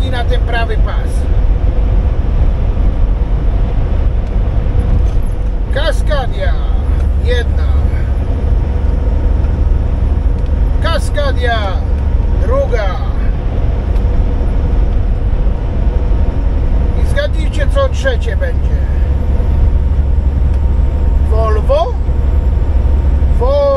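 A truck engine rumbles steadily while driving on a highway.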